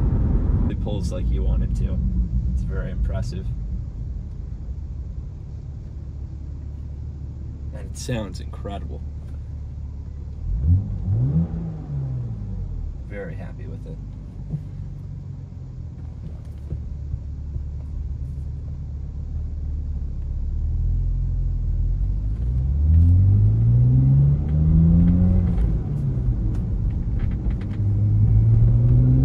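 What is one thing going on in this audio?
A car engine hums and revs up as it accelerates through the gears.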